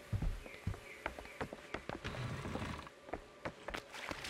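A heavy door swings open.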